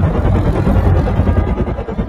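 A helicopter flies overhead with a whirring rotor.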